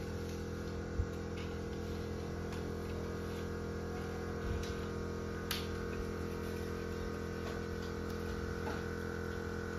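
A metal wire cage rattles and clinks as it is handled.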